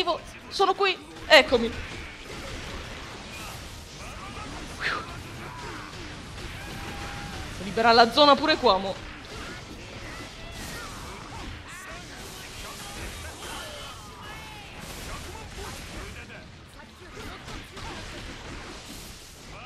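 Blows and slashes clash rapidly in a fight.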